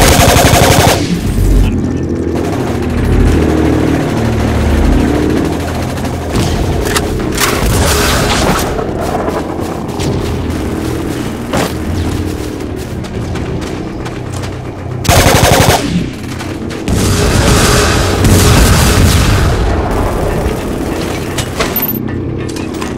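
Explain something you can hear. Gunfire crackles in bursts.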